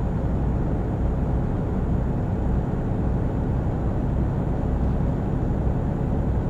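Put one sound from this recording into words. A truck engine hums steadily as the truck drives along a highway.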